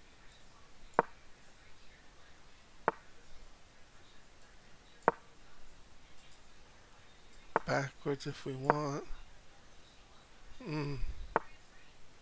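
A short wooden click sounds each time a chess piece is moved.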